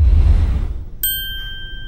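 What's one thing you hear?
A magic wand twinkles with a bright, ringing chime.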